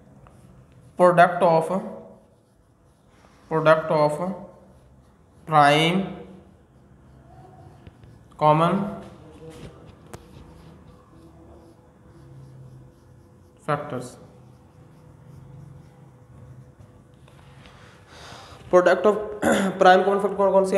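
A man speaks slowly and clearly in short phrases, as if teaching.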